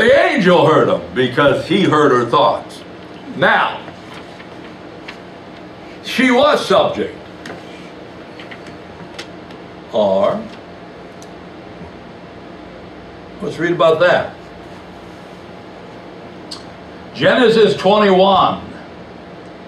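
An elderly man speaks calmly through a microphone in short phrases with pauses.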